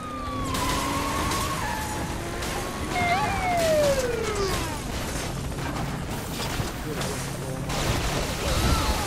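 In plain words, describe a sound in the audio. A car engine roars as tyres skid.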